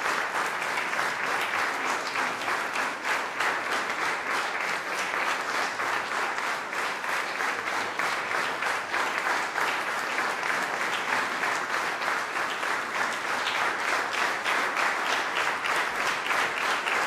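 An audience applauds steadily in an echoing hall.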